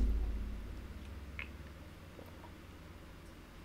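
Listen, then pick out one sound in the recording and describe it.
A young woman drinks from a bottle with soft gulps.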